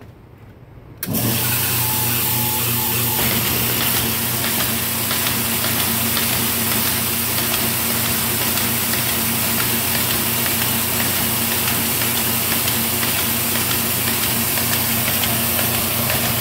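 A paper folding machine starts up and runs with a steady, loud whirring rattle.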